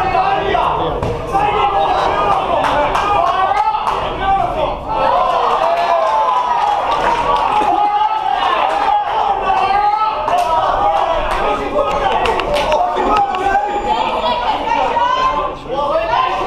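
A crowd of men shouts and cheers loudly in an echoing hall.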